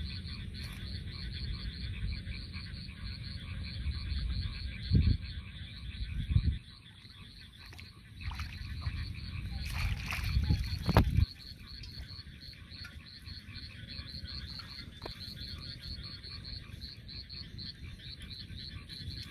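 A bamboo fish trap creaks and rattles as it is handled.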